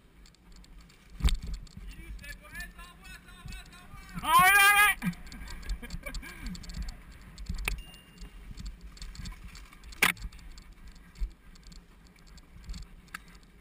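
A bicycle rattles and clatters over a rough trail.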